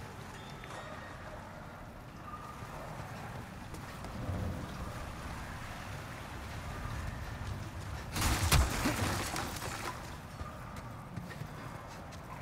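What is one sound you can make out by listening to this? Footsteps thud on wooden boards and stone as a figure runs.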